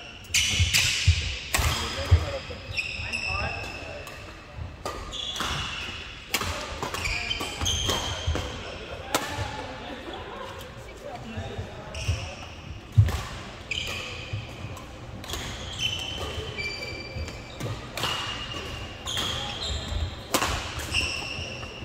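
Shoes squeak sharply on a wooden court floor.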